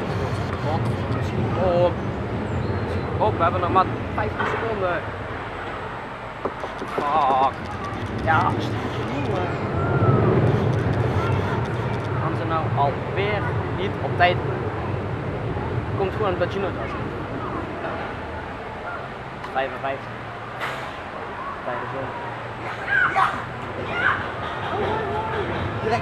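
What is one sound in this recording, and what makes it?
A young man talks calmly and close by.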